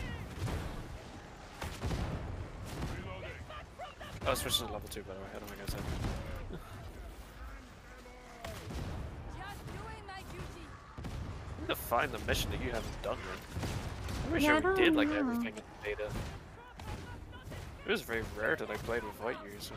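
Guns fire in quick bursts.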